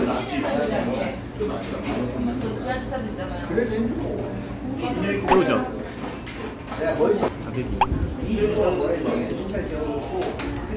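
A metal spoon clinks and scrapes against a stone pot.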